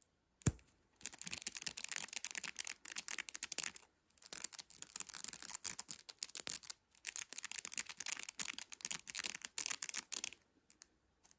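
Fingers rub and squeeze a stretchy mesh toy, making a crinkly scratching sound up close.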